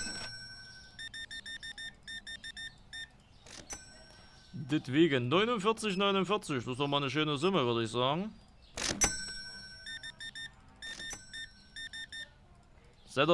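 A checkout scanner beeps in quick repeated bursts.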